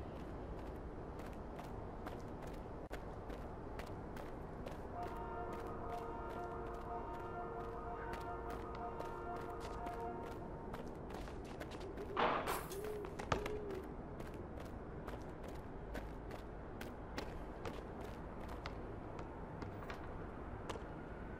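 Footsteps run quickly and steadily on hard pavement.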